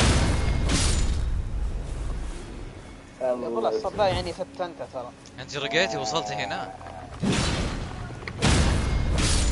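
Magic blasts whoosh and crackle in bursts.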